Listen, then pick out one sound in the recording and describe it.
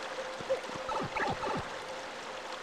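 A video game warp sound plays as quick falling tones.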